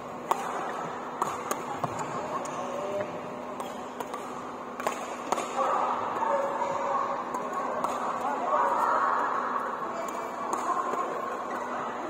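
Rackets strike shuttlecocks with sharp pings in a large echoing hall.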